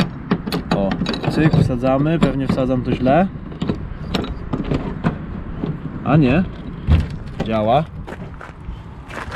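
A metal key rattles and clicks in a lock.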